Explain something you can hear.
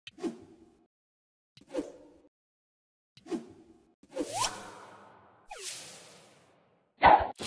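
Soft electronic blips sound as game buttons are tapped.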